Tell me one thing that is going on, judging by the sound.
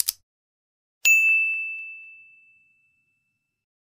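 A bell chimes once and rings out.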